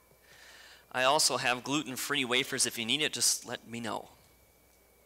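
A man speaks clearly into a microphone.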